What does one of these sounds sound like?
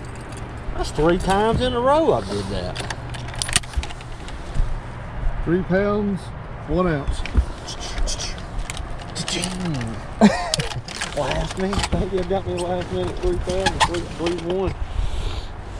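A man talks calmly nearby outdoors.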